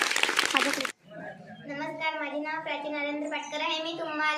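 A young girl speaks clearly into a microphone.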